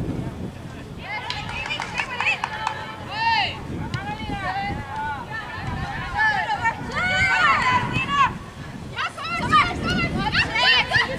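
Women shout and cheer loudly nearby, outdoors.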